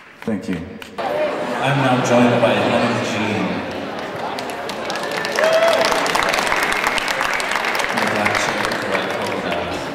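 An acoustic guitar is strummed through loudspeakers.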